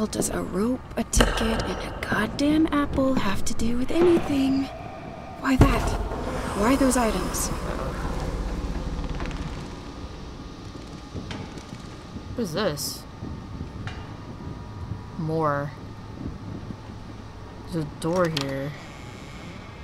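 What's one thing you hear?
A young woman speaks into a close microphone.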